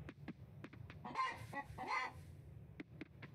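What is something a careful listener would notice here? A hen clucks softly nearby.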